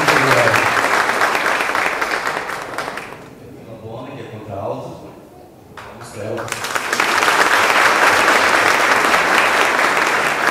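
A large crowd applauds loudly in a hall.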